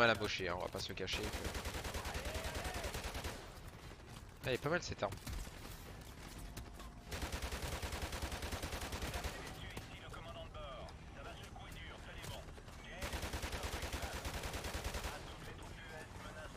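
A machine gun fires in long rapid bursts.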